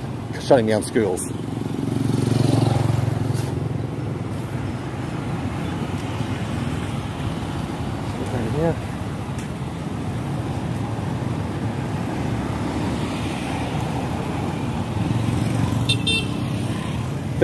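Motorbikes and cars drive past on a road close by.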